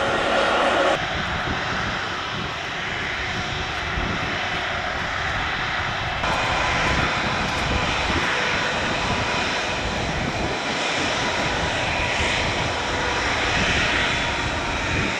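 Jet engines roar steadily as a large airliner taxis nearby.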